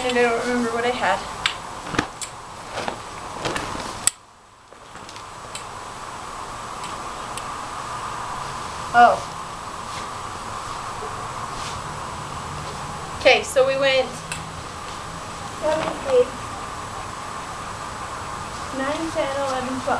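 A young woman speaks casually nearby.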